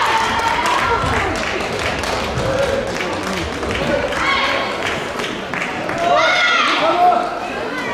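Badminton rackets strike a shuttlecock back and forth in a large echoing hall.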